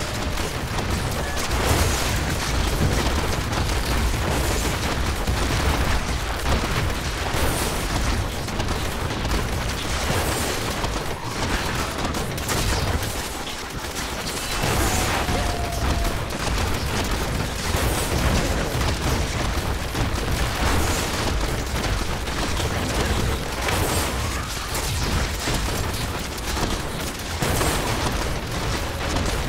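Magic bolts fire and zap in rapid bursts.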